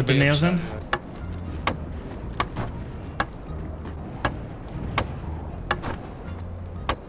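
A hammer knocks on wood in steady, repeated blows.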